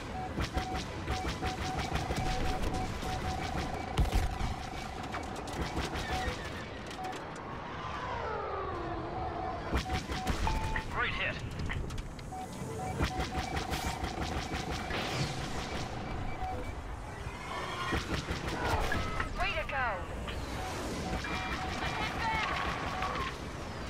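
A starfighter engine roars steadily.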